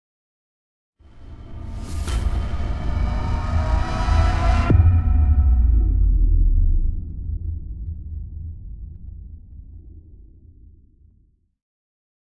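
Heavy stone blocks crack and crumble apart with a deep rumble.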